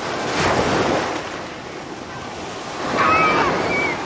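Water splashes as a shark leaps out of the sea.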